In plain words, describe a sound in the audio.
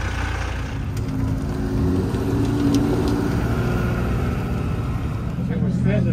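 A sports car engine hums low and close by.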